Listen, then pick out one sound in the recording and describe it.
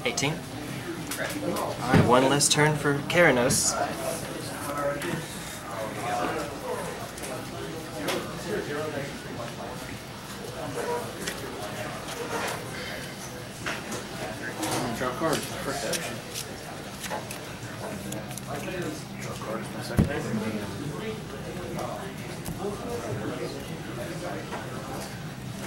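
Playing cards are shuffled and slapped onto a table.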